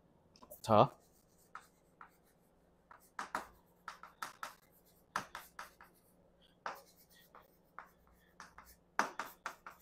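Chalk taps and scratches on a board in quick strokes.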